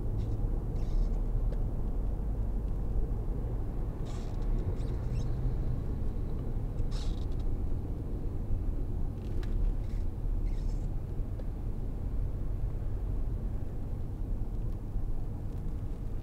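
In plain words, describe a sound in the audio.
Tyres roar steadily on a road.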